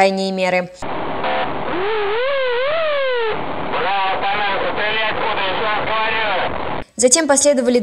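A man speaks into a radio.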